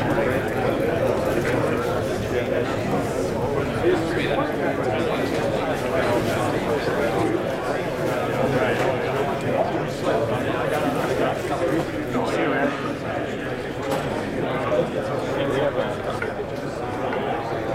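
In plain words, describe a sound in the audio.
A crowd of men chatters steadily in a room with some echo.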